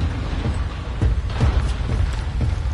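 Heavy boots thud on a metal floor.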